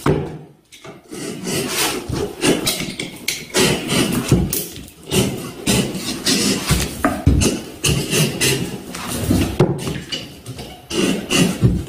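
Tape crinkles as a roll is pressed and rolled along a board.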